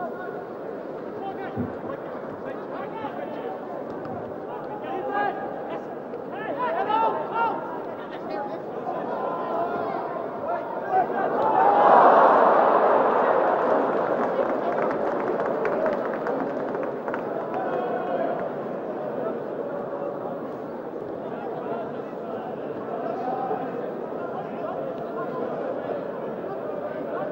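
A large stadium crowd murmurs and cheers outdoors, swelling into a loud roar and then slowly settling.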